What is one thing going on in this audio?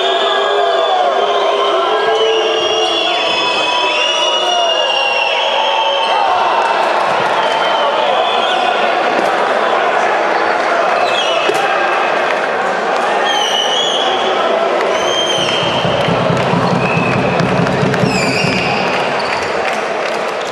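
A crowd cheers and chatters loudly in a large echoing hall.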